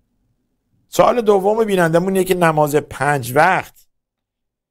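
An older man speaks with feeling, close to a microphone.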